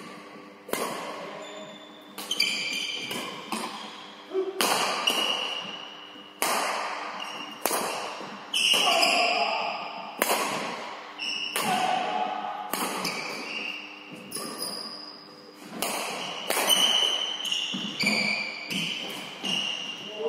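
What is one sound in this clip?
Shuttlecocks are struck with rackets, sharp smacks echoing in a large hall.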